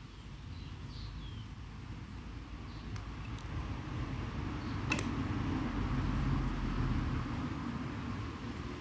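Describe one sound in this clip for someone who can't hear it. Wind rumbles across the microphone outdoors.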